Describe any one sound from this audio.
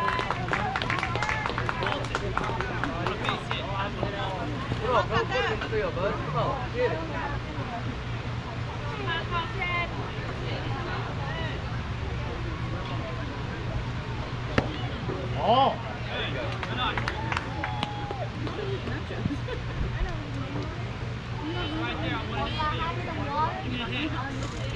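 Children and adults call out and cheer across an open field outdoors.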